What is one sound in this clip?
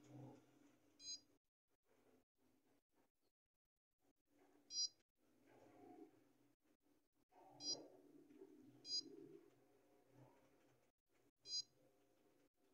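A touchscreen gives a short electronic beep with each tap.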